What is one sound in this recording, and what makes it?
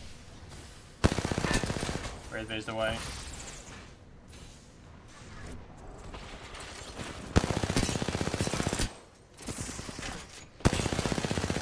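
Rapid automatic gunfire rattles in short bursts.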